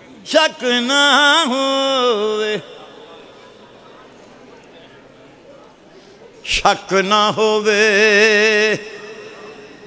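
An elderly man chants a verse into a microphone in long, drawn-out tones, heard through loudspeakers.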